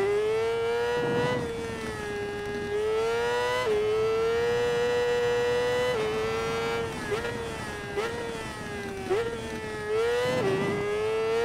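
A motorcycle engine snarls and pops as it slows for corners.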